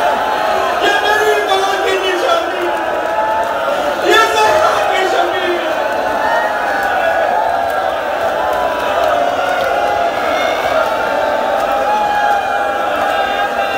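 A man chants loudly into a microphone, heard through loudspeakers.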